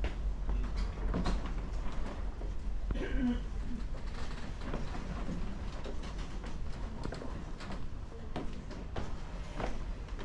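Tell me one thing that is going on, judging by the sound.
Footsteps thud softly on wooden stairs.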